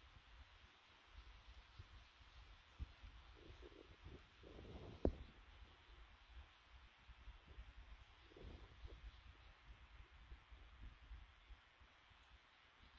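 Hands scrape and tap on dry ground.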